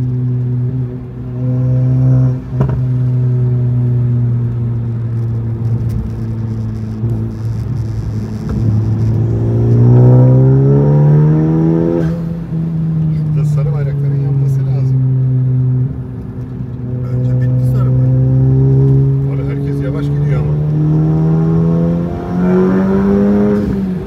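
A turbocharged four-cylinder sports car engine pulls hard from inside the cabin.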